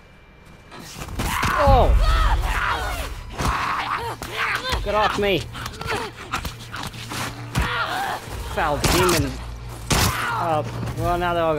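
A young woman grunts and screams while struggling.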